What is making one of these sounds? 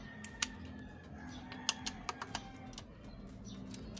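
A metal wrench clicks against metal bolts.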